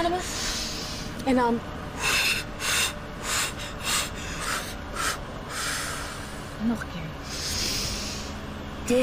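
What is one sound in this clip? A young woman whimpers and speaks tearfully up close.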